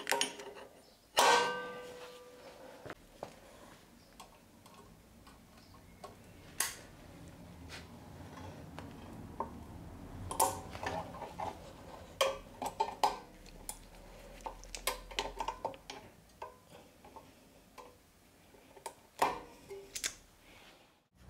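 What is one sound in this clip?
Metal parts click and clink as pliers work a brake spring.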